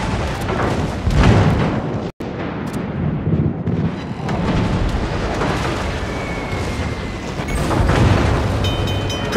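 Heavy ship guns fire with deep booming blasts.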